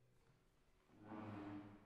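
A piano begins to play in a large, echoing hall.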